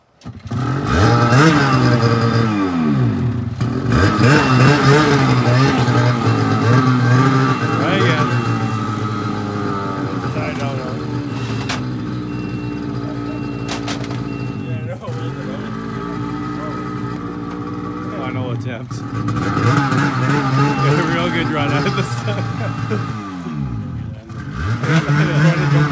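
A snowmobile engine idles loudly nearby and revs up and down now and then.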